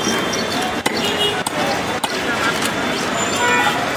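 A wooden baton knocks on a blade through a fish.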